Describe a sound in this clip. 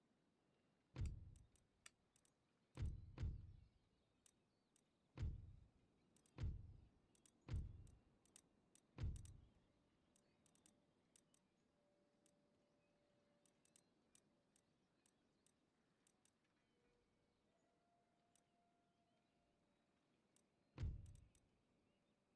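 Soft, deep interface thuds sound again and again as game menus open and close.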